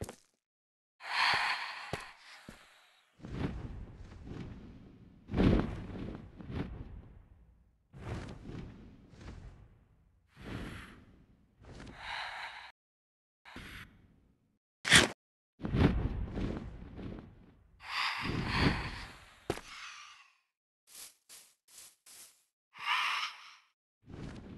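A large flying creature screeches in short bursts.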